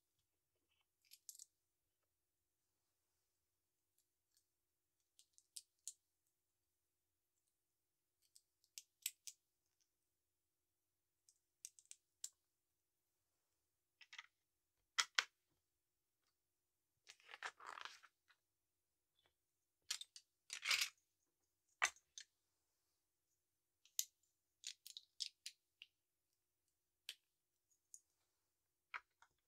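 Plastic toy bricks click and clatter as hands sort and snap them together.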